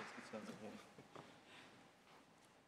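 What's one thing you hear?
A man speaks briefly through a microphone in a large hall.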